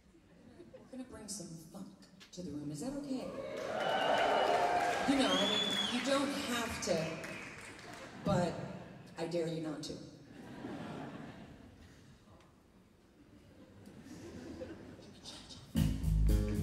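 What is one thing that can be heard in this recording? A woman sings through a microphone with the orchestra.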